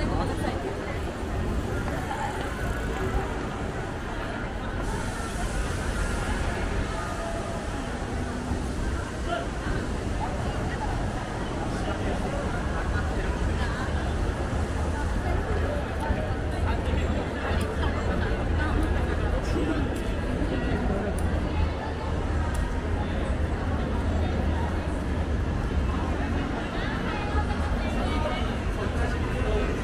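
A crowd murmurs in the distance outdoors.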